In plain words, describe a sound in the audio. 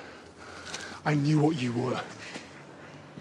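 A man shouts angrily close by.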